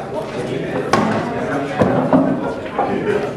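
Pool balls knock together with a clack.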